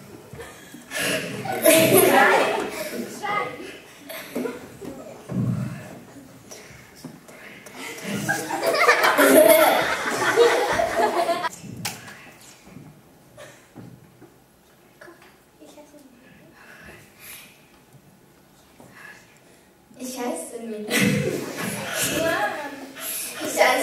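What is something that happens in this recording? A young girl laughs close to a microphone.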